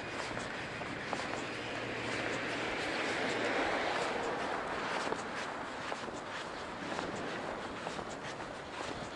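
Tyres rattle and tick over a rough path.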